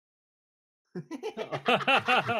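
A man laughs loudly and heartily close to a microphone.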